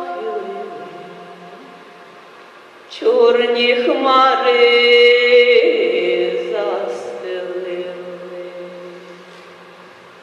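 A woman sings a slow, drawn-out melody through a microphone in a large echoing hall.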